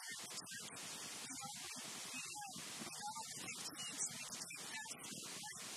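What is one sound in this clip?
A woman speaks with animation into a microphone, heard through a loudspeaker in a room.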